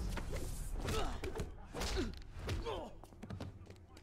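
Heavy blows land in a scuffle.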